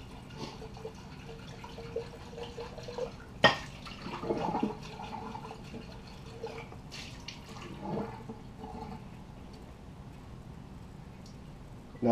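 Dishes clink at a sink.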